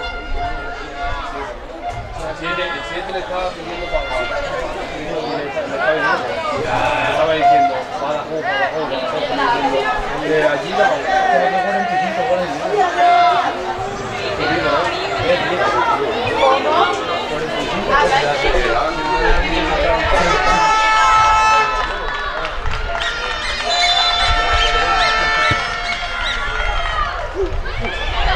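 Young players shout to each other across an outdoor pitch.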